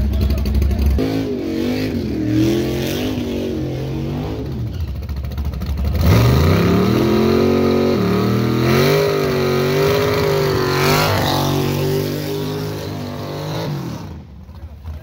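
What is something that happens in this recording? A drag-race muscle car revs hard.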